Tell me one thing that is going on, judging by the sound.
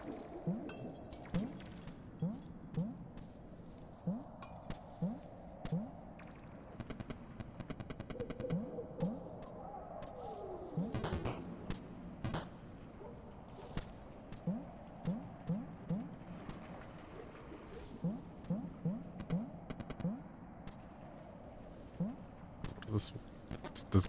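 Short soft plucks sound as a small game character hops and runs.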